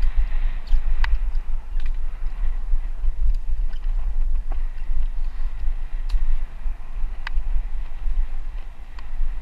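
A bicycle rattles sharply over bumps on a trail.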